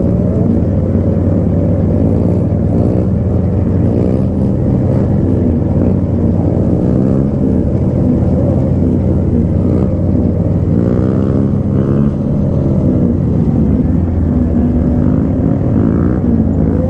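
A motorcycle engine rumbles close by as it rides down a street.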